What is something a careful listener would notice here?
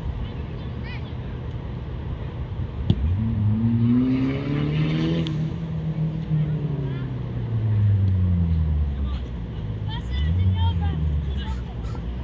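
A soccer ball thumps as a child kicks it.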